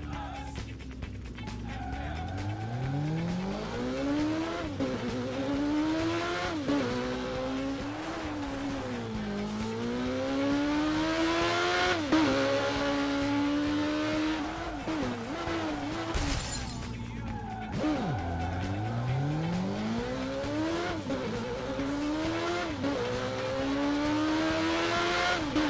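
A motorcycle engine revs high, rising and dropping with each gear change.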